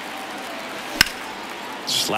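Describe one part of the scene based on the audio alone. A baseball bat cracks sharply against a ball.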